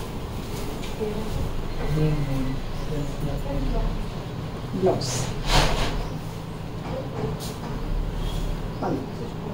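A woman speaks calmly and steadily close by.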